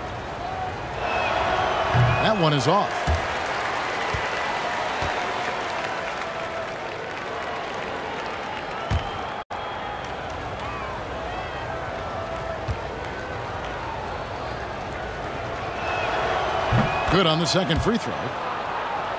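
A crowd cheers loudly, rising and then settling.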